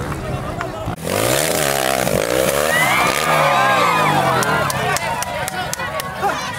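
A motorbike engine revs up and down loudly.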